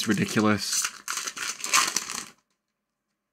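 A foil wrapper crinkles and rustles in someone's hands.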